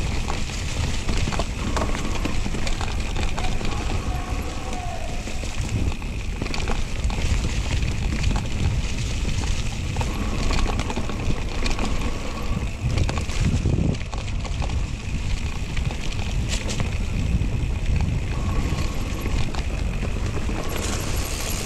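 A bicycle frame clanks and ticks over bumps.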